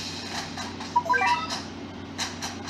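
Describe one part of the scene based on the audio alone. A short, bright, rising electronic jingle plays.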